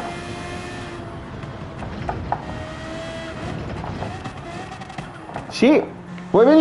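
A racing car engine hums steadily and shifts pitch.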